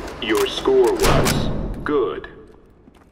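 A rifle clanks and rattles as it is handled.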